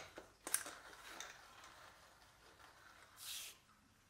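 A metal wheel spins freely with a soft whirring.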